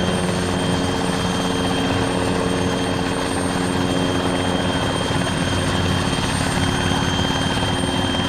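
A helicopter's rotor blades thump steadily and rapidly.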